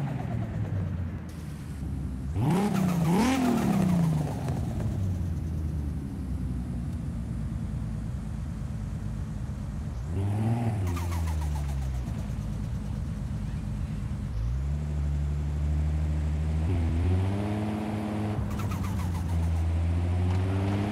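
A car engine hums steadily and revs up sharply now and then.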